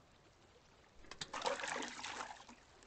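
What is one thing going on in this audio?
A bucket splashes into water.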